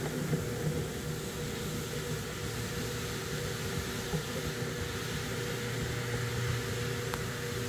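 A floor scrubbing machine hums and whirs steadily.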